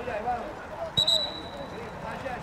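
A referee's whistle blows one short sharp blast.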